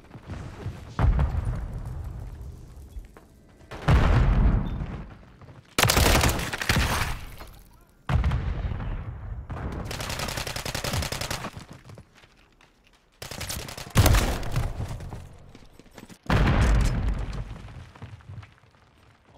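Loud gunshots boom and echo, a few seconds apart.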